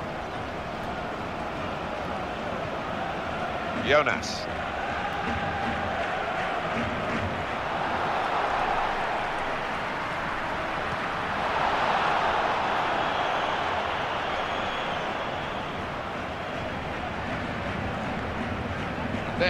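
A large stadium crowd roars steadily, swelling now and then.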